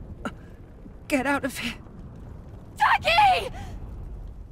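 A woman speaks weakly and breathlessly up close.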